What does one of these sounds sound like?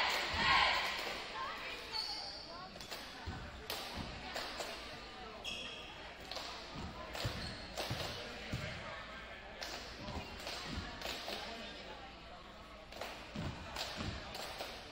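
A basketball bounces on a hardwood floor, echoing in a large gym.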